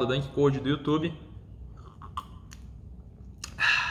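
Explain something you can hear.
A young man sips a drink from a cup.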